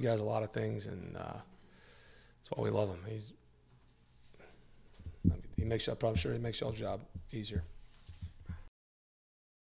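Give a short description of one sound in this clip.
A man speaks calmly into microphones at close range.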